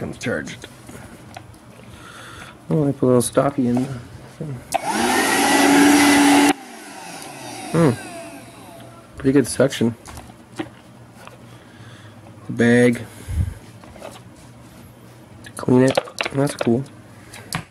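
Plastic parts of a vacuum cleaner click and rattle as they are handled.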